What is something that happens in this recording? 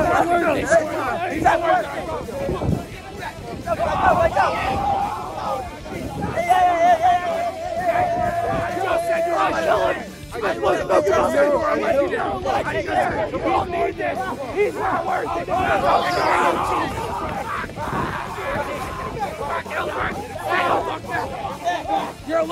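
A group of young men shout and laugh excitedly close by.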